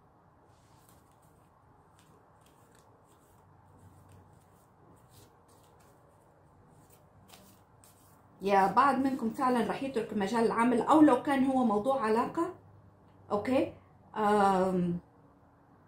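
Playing cards are shuffled and tapped together by hand.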